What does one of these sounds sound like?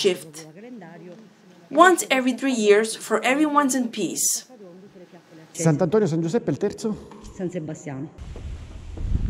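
A young woman speaks with animation close by, in an echoing hall.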